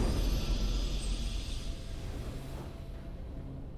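A triumphant game fanfare rings out loudly and fades away.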